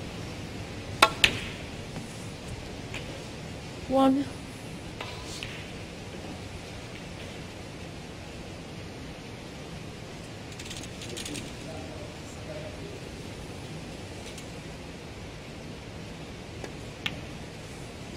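Snooker balls click sharply against each other on a table.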